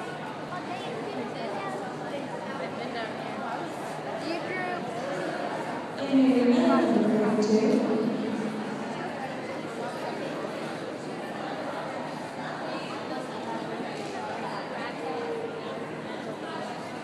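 A horse's hooves thud softly on sand in a large echoing hall.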